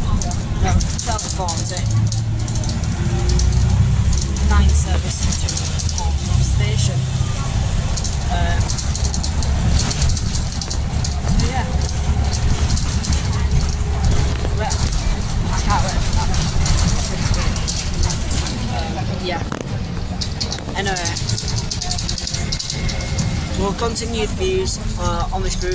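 A young man talks close to the microphone, in a casual, animated way.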